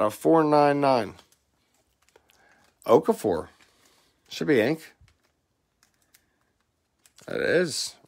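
Trading cards slide and rustle softly between fingers.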